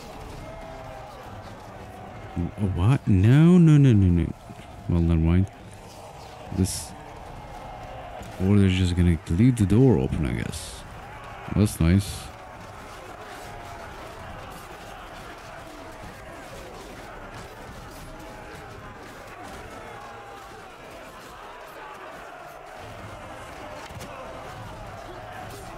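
A crowd of soldiers shouts and clamours in battle.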